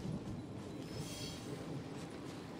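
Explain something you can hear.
A soft chime rings as a reward is collected.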